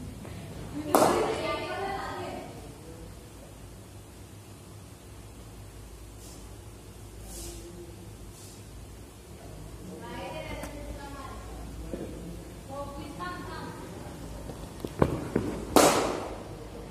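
A cricket bat cracks against a leather ball in an echoing indoor net.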